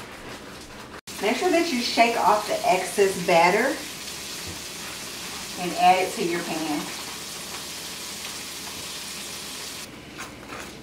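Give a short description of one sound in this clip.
Oil sizzles steadily in a frying pan.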